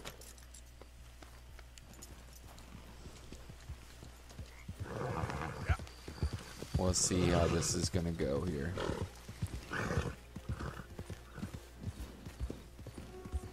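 A horse's hooves thud softly on leaves and grass.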